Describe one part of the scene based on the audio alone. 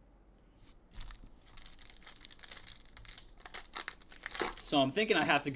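Foil card wrappers crinkle and tear in hands.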